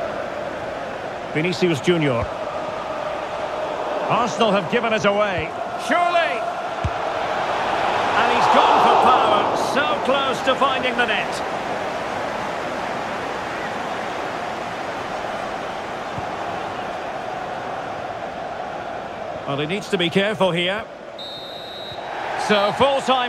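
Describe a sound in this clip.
A large stadium crowd roars steadily, swelling for a moment before settling again.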